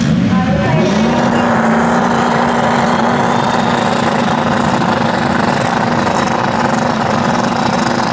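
A race car engine idles nearby with a steady, deep rumble.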